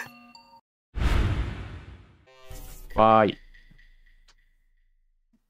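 A short electronic fanfare plays as a game reveals a role.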